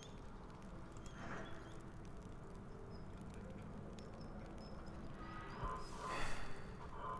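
A fire crackles softly in a hearth.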